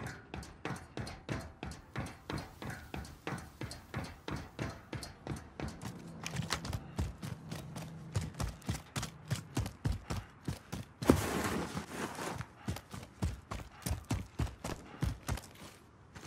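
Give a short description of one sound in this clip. Footsteps run quickly over hard ground and dirt.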